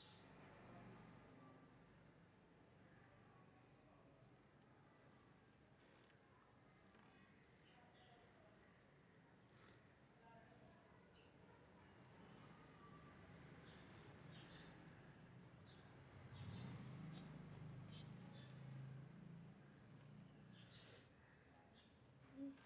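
Hands softly rub and knead bare skin.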